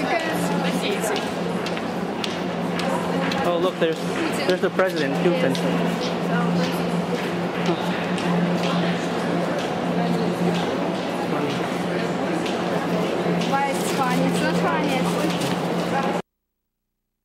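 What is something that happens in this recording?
A crowd chatters in a busy indoor space.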